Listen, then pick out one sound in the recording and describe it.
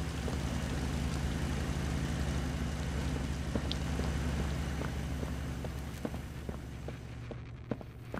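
A large machine hums with a steady low drone that slowly fades.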